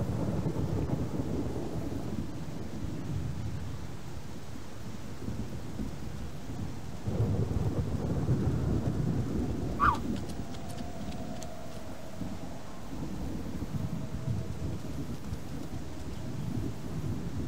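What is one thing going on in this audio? An animal's paws rustle through grass and undergrowth.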